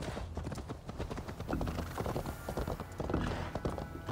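Horse hooves clop on wooden planks.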